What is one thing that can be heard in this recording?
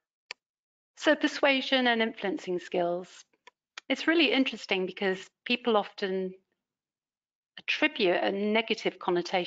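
A woman speaks calmly through a microphone on an online call.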